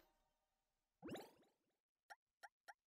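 A game menu opens with a quick rising whoosh.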